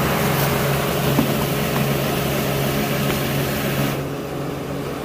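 A bucket scrapes through dry powder.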